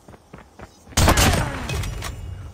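A rifle fires a loud, booming shot that echoes briefly.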